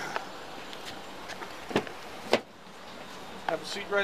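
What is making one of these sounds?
A car door bangs open.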